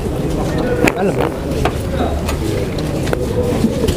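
A van door clicks open.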